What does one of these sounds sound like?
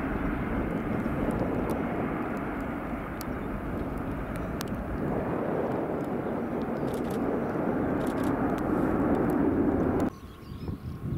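A jet airliner roars loudly as it takes off and climbs away.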